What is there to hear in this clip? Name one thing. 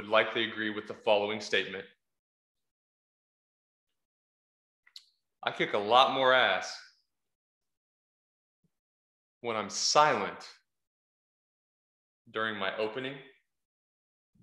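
A young man speaks in short bursts close to a microphone, with animation.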